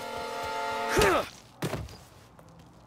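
A man punches another man.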